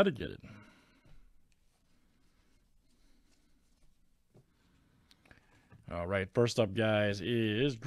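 Trading cards slide and rustle against each other.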